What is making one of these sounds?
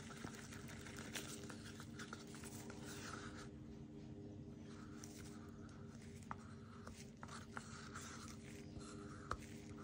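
A wooden stick scrapes thick paint around inside a cup.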